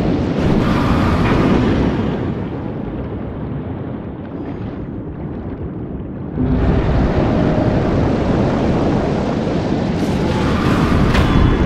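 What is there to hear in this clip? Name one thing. Bubbles gurgle and fizz in a rush.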